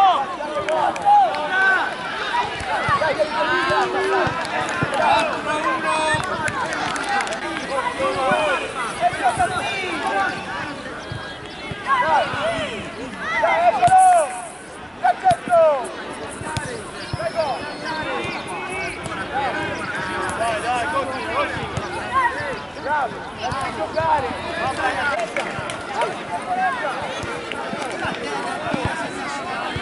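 Children shout and call out excitedly outdoors.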